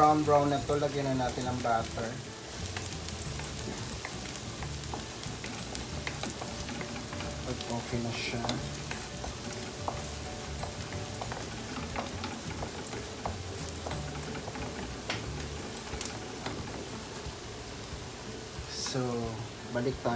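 Garlic sizzles softly in a hot pan.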